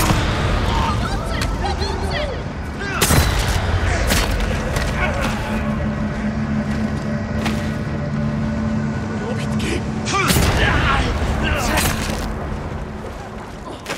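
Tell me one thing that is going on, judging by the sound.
Swords clash and ring in a fight.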